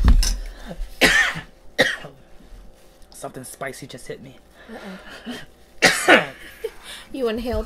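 A man slurps and chews food noisily.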